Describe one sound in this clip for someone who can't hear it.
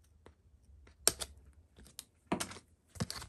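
Paper backing crinkles as it is peeled away.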